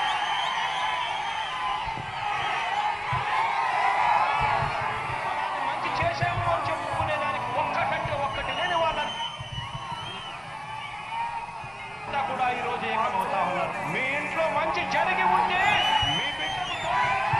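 A huge crowd cheers and roars outdoors.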